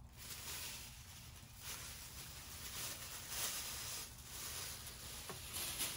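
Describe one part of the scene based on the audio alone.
Thin plastic sheeting crinkles.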